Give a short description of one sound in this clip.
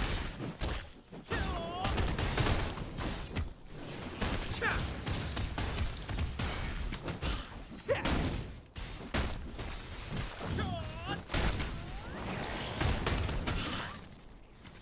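Sword blows strike a giant scorpion with heavy impacts.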